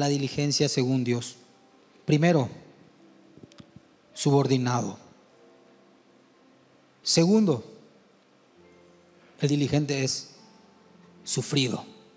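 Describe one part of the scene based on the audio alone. A man preaches with fervour into a microphone, his voice ringing through a large echoing hall.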